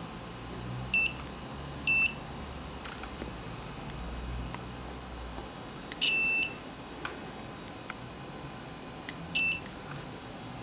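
A multimeter beeps in short, sharp tones.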